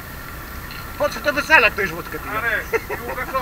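Men laugh loudly close by.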